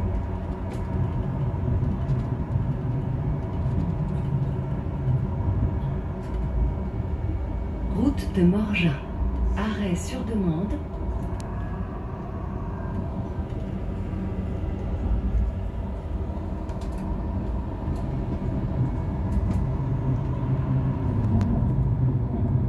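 An electric train motor hums steadily while the train rolls along the track.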